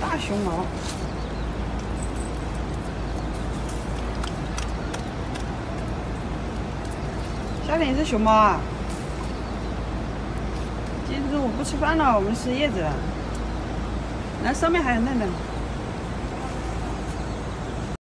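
A dog rustles through leafy plants.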